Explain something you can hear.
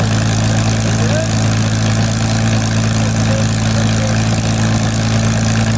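A propeller aircraft's piston engine idles with a loud, steady throbbing drone close by.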